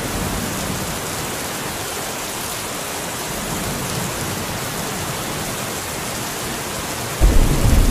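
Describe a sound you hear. Floodwater roars and rushes loudly nearby.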